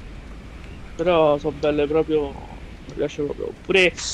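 A man speaks animatedly close to a microphone.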